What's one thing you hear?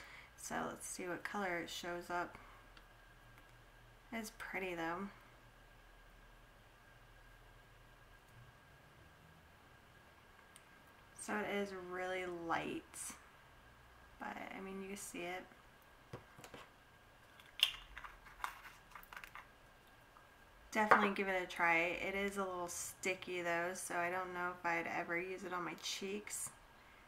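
A young woman talks calmly and close by, in bursts with pauses.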